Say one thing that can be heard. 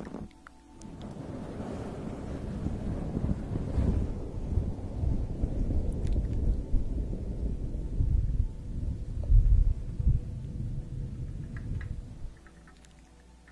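Hands rub a fluffy cover over a microphone with a soft, deep rumble.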